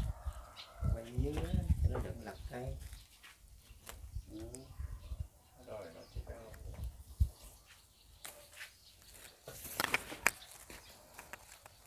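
Leaves rustle as a potted shrub is handled.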